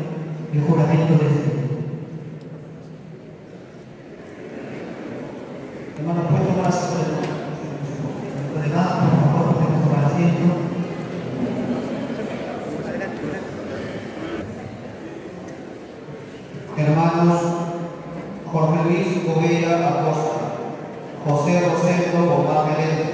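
A man speaks steadily into a microphone, heard through loudspeakers in an echoing hall.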